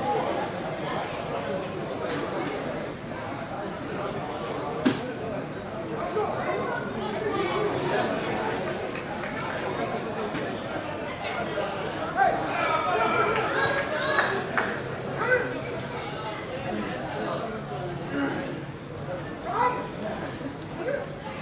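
Young men shout to each other across an open, echoing pitch.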